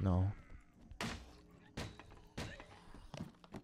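Heavy blows thud as a weapon strikes.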